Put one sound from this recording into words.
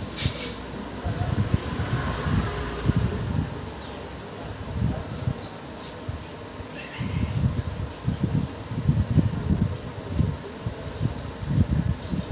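A sponge rubs and pats against skin with soft, rhythmic thumps.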